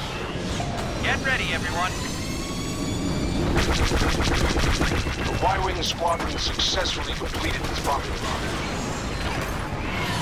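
A starfighter engine roars steadily.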